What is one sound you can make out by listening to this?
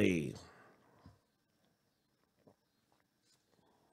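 A small object is set down on a soft mat.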